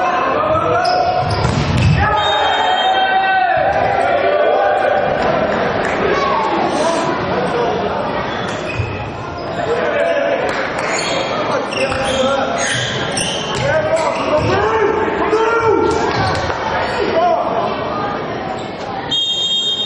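Young men shout and call to one another in an echoing sports hall.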